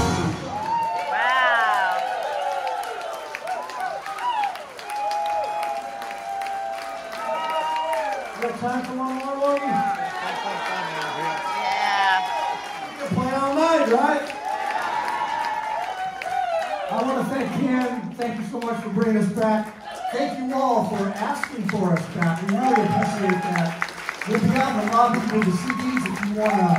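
A rock band plays live through loudspeakers in a large hall.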